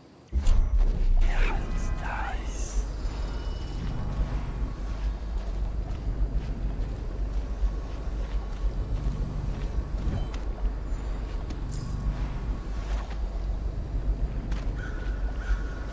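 Footsteps crunch through grass.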